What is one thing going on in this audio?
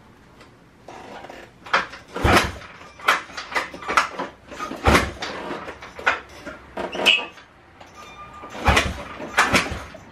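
An engine's kick starter is stamped down with knocks and clatters.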